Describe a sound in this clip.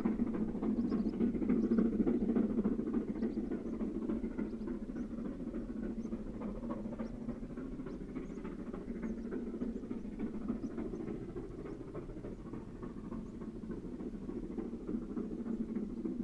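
A steam locomotive chuffs steadily in the distance, outdoors.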